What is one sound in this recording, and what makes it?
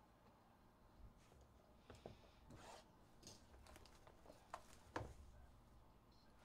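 A cardboard box scrapes and knocks as hands handle it.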